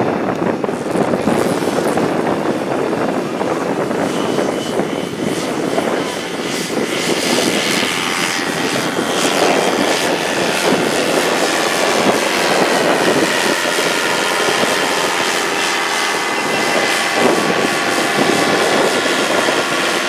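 Wind blows across an open field with a rough rumble.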